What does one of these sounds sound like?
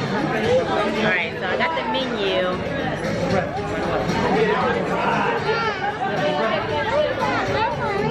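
Many people chatter in the background of a busy room.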